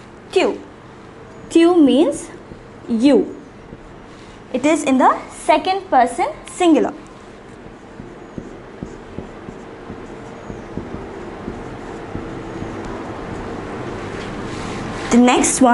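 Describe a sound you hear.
A young woman speaks clearly and calmly, as if teaching, into a nearby microphone.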